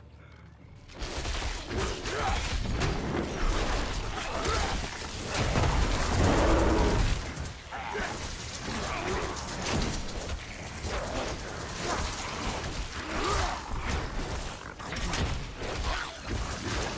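Game combat sounds crash and clash with spell blasts.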